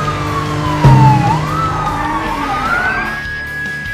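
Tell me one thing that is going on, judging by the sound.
Car tyres screech as a car skids to a stop.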